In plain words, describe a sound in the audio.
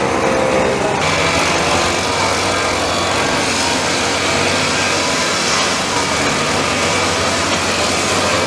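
Backpack sprayer engines roar steadily close by.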